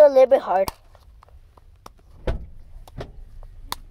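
Plastic packaging crinkles and rustles in hands.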